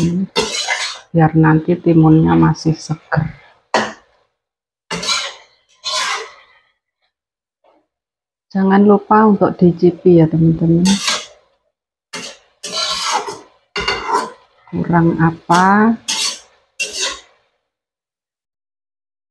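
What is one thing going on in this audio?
A metal spatula scrapes and stirs in a pan.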